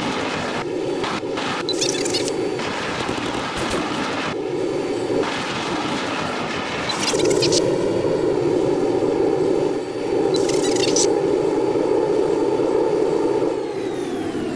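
A jet engine roars steadily, surging louder at times.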